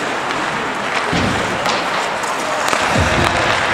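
Hockey sticks clack against a puck in a large echoing hall.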